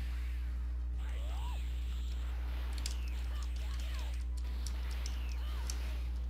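Punches and whooshes from a fighting game thud and swish.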